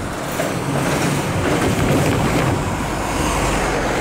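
A truck drives past close by.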